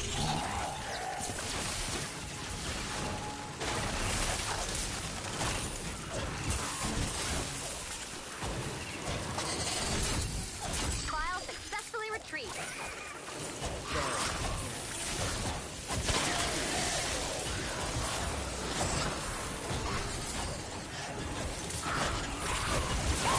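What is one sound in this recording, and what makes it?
Game sounds of building and hammering play throughout.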